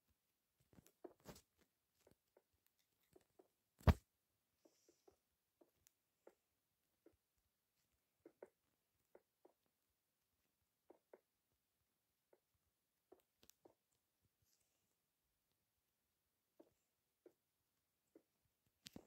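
Blocks are placed with short soft thuds in a game.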